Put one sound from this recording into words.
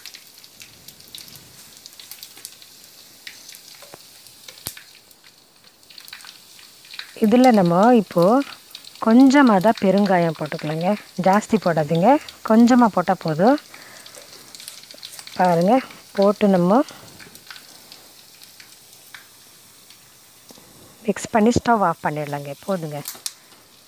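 A gas burner hisses softly.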